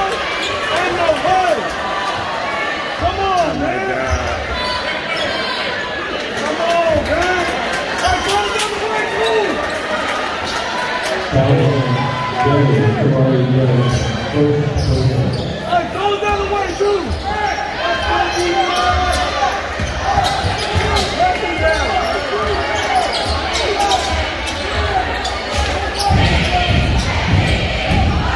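A crowd in a large echoing gym murmurs and chatters.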